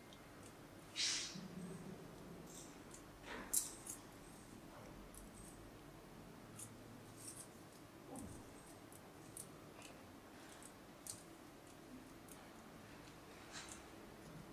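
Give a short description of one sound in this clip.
Small pliers snip and click against thin metal parts.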